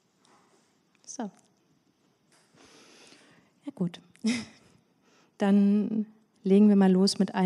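A young woman speaks into a microphone, calmly and with pauses.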